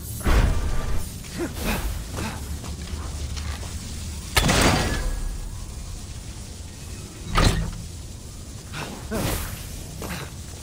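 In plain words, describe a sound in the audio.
A game character's footsteps thud on stone.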